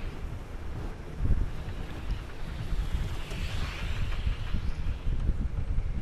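Wind rushes and roars steadily.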